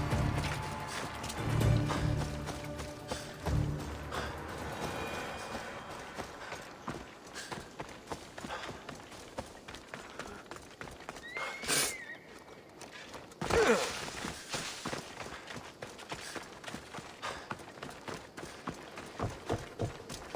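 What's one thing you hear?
Footsteps patter quickly over grass and dirt.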